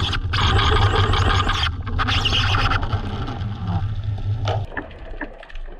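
Water rushes and bubbles close by, heard underwater.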